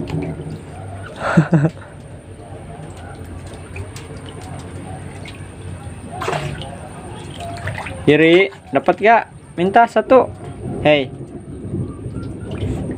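An otter splashes and paddles in a tub of water.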